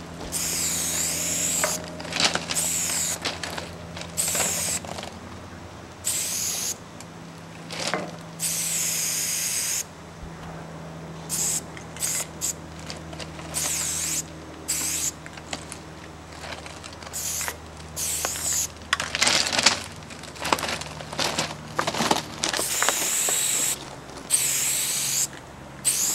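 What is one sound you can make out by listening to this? A spray can hisses in short bursts close by.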